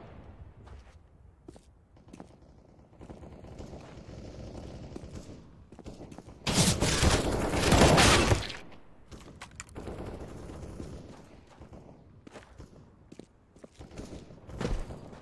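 Footsteps run quickly across hard pavement.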